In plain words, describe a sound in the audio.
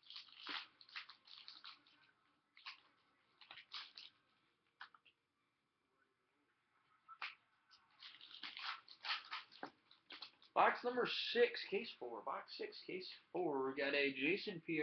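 Trading cards in plastic sleeves rustle and click as they are handled close by.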